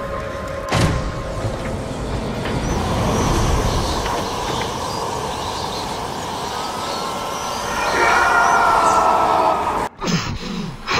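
A huge creature roars with a deep rumble.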